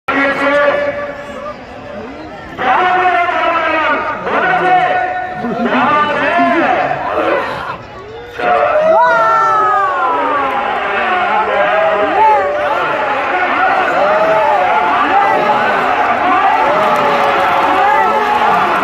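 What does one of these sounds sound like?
A man commentates loudly and animatedly through a microphone and loudspeaker.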